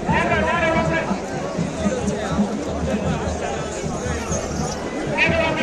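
A man nearby shouts loudly.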